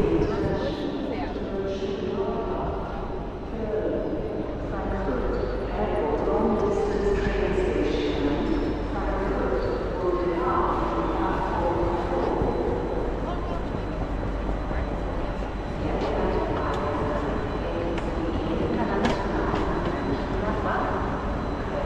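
Men and women chatter nearby in a large echoing hall.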